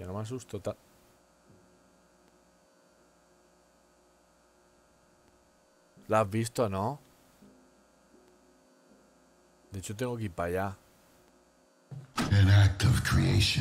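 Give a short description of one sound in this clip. A young man speaks with animation into a close microphone, in short bursts.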